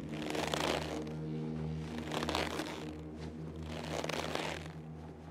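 Air whooshes with each swing of a figure on a rope.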